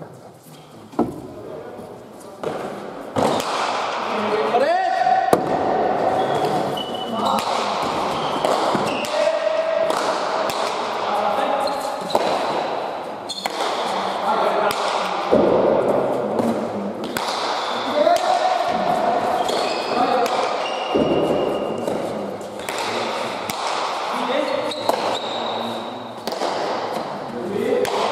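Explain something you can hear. A ball smacks hard against a wall and echoes through a large hall.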